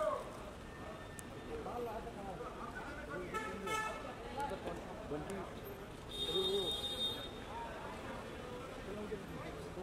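Several men and women talk over one another outdoors.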